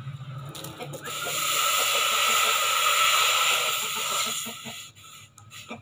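Water pours into a metal pot.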